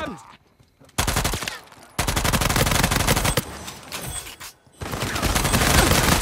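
Gunshots ring out in rapid bursts.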